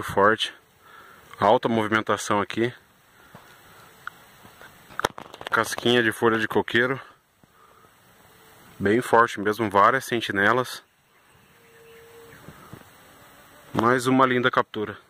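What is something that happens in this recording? Bees buzz faintly around a hive entrance.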